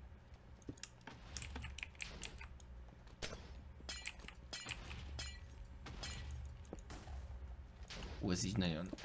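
Blocks break with short, quick crunching clicks.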